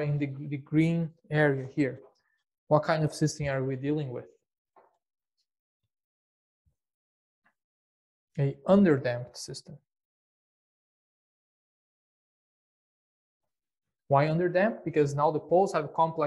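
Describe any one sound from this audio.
A middle-aged man speaks calmly and clearly into a close microphone, pausing between phrases.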